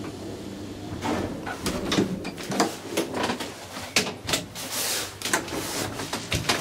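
A wooden door rattles and knocks as it is opened.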